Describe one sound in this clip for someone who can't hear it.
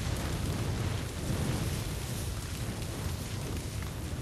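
Fire roars and crackles close by.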